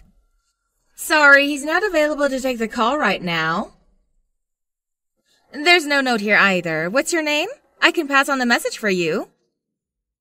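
A young woman speaks calmly on a phone nearby.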